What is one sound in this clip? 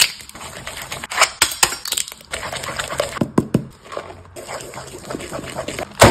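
A wooden spoon stirs a thick batter in a glass bowl.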